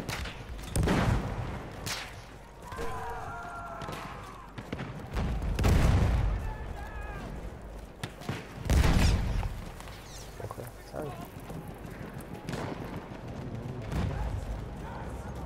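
Distant rifles crack in scattered bursts.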